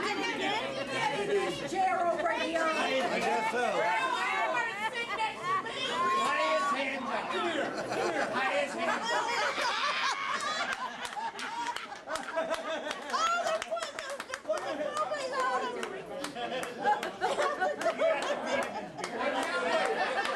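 A crowd of men and women talk and laugh loudly in a busy, noisy room.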